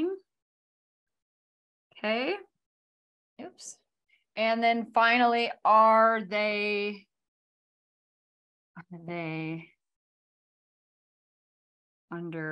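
A woman speaks clearly and slowly, in short phrases, close by.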